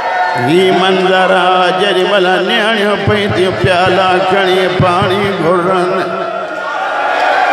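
A man recites loudly in a mournful chant through a microphone.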